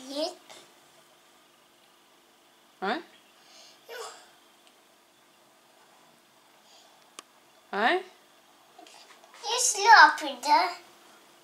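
A young child speaks in short bursts close by.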